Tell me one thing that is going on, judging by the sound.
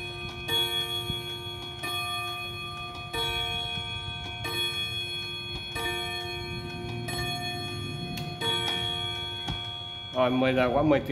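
A clock chimes a series of ringing strikes, each fading slowly.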